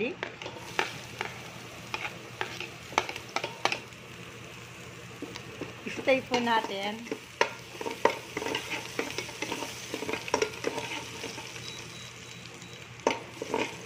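Chopped garlic sizzles softly in hot oil.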